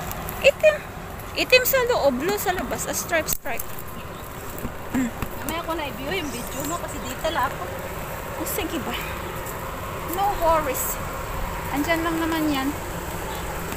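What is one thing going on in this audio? A woman talks close to the microphone in a calm, friendly voice.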